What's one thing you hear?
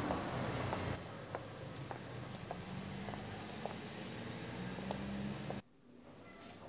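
Footsteps walk steadily on pavement outdoors.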